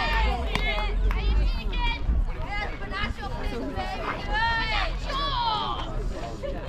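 Young women shout and cheer loudly outdoors.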